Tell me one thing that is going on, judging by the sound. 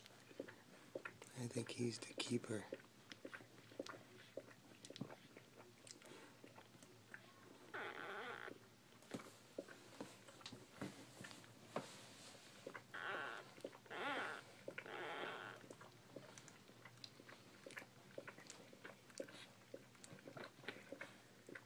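Newborn puppies suckle with soft, wet smacking sounds.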